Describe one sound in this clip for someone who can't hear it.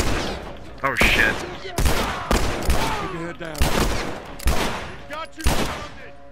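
Pistol shots ring out one after another with a short echo.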